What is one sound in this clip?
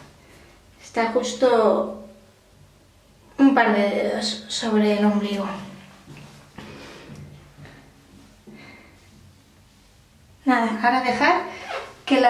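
A young woman talks calmly close by, in a small echoing room.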